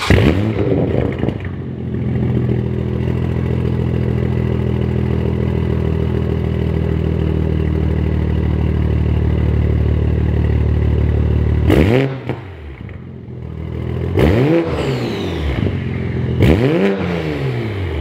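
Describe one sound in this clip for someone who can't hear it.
A sports car engine idles with a deep, rumbling exhaust.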